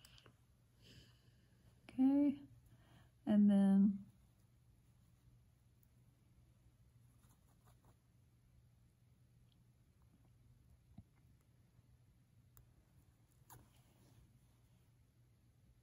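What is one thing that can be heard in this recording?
A needle and thread pull softly through cloth.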